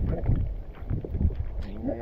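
A spinning fishing reel is cranked to wind in line.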